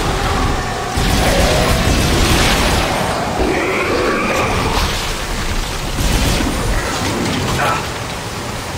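A futuristic gun fires in loud bursts.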